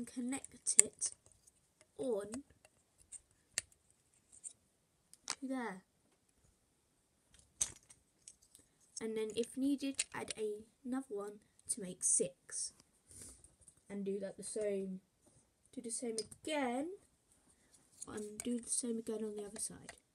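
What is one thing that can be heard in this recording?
Plastic toy bricks click and snap together.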